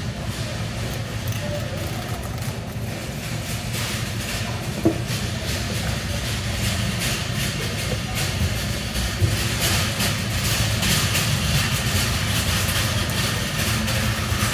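A knife slices through fish on a plastic board.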